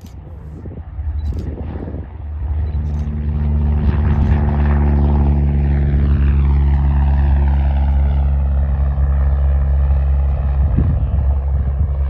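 A small propeller plane's engine roars loudly as the plane takes off and flies past, its pitch slowly dropping.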